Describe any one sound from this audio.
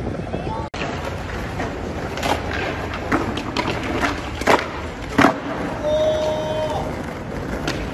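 Skateboard wheels roll and clack on pavement.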